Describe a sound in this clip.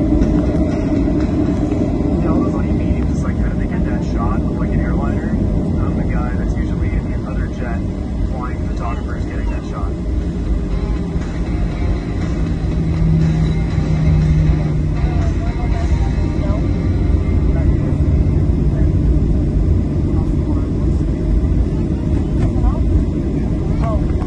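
An airliner's wheels rumble over the runway.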